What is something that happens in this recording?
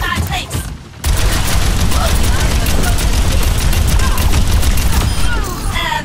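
Explosions boom heavily.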